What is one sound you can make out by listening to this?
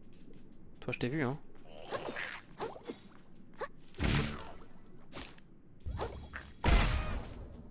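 A blade swishes through the water in quick bursts.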